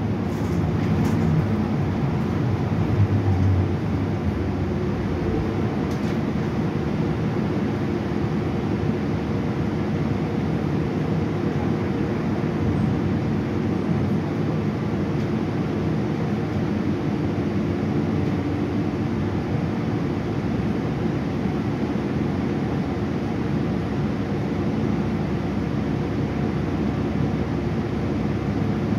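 A bus body rattles and creaks over the road.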